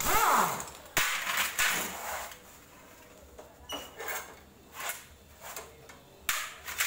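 Metal tools clink and clatter against a metal tray.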